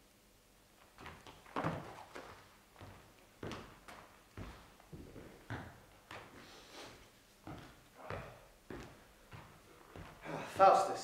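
Footsteps knock on a hard floor.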